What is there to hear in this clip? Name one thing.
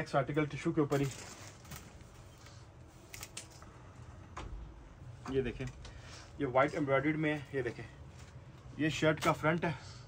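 Fabric rustles as it is unfolded and handled.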